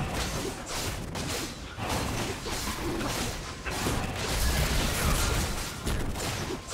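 Game spell effects whoosh and crackle.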